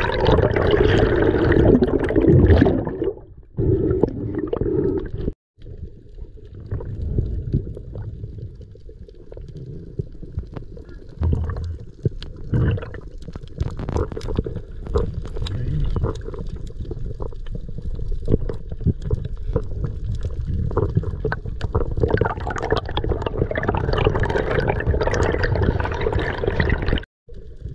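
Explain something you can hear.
Water rumbles and swishes, heard muffled underwater.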